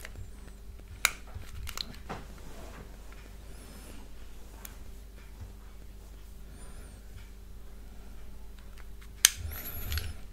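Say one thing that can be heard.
A lighter clicks sharply close by.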